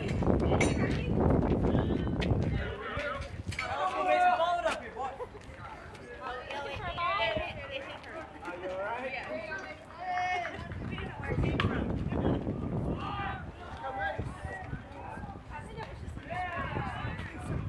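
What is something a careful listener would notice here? Young girls call out and cheer nearby.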